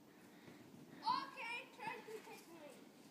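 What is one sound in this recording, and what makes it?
A young child shouts excitedly.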